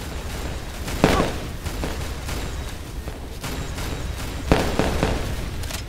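A firework launcher fires with a sharp bang.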